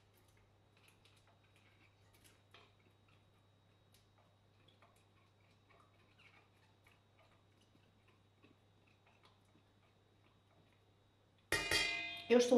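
Dry bits patter softly into a metal pot.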